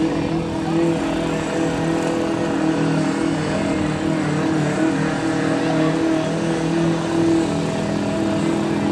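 A truck engine roars loudly as it churns through deep mud.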